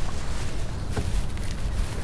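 Water splashes and drips as a man lifts a wire trap from the water.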